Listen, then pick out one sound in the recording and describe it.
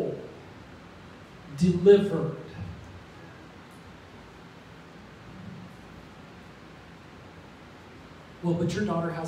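A middle-aged man speaks calmly into a microphone, heard through loudspeakers in a large room.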